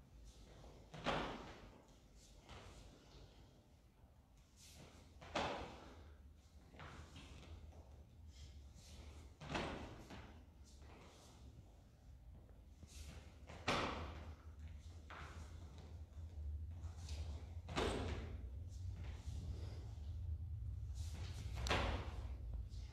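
A man stamps his feet hard on the floor, again and again at even intervals.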